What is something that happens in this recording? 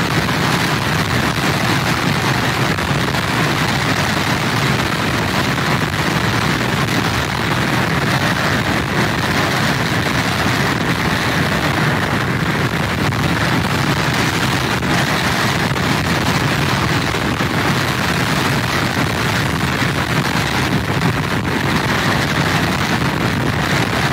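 Heavy surf crashes and roars against pier pilings.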